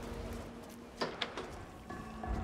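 A wooden door opens with a knock and a creak.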